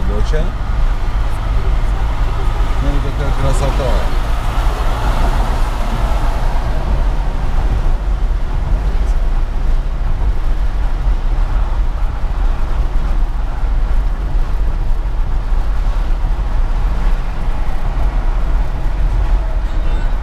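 A car's engine hums steadily.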